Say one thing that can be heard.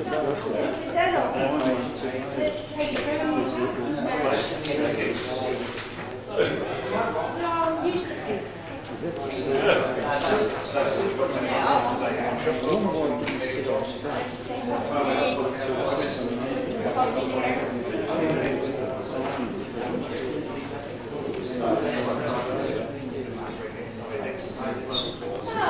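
Two men talk quietly with each other.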